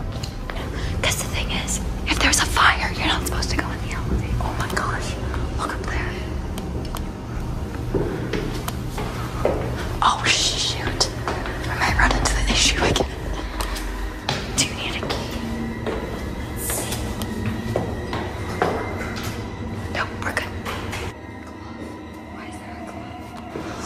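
Footsteps climb stairs in an echoing stairwell.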